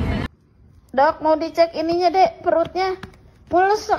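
A small child speaks close by.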